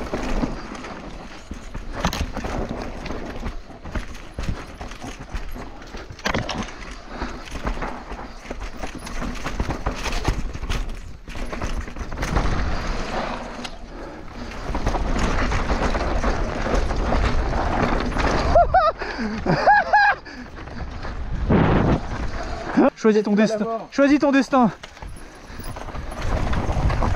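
Bicycle tyres crunch and skid over a dirt trail.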